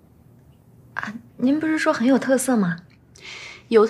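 A young woman speaks softly in reply.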